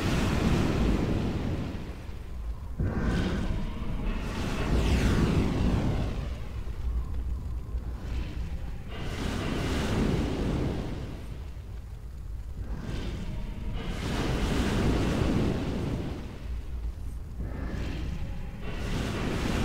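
Flames roar in slow, swelling waves.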